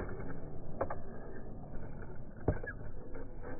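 Plastic wheels knock against a concrete ramp.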